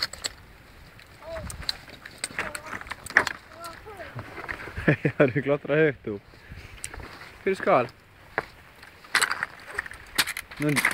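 Loose stones clatter and scrape underfoot.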